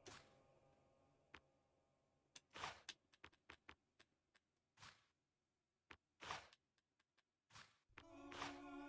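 Soft menu clicks tick as items are scrolled through.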